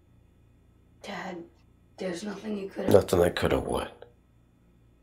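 A boy speaks quietly and close by.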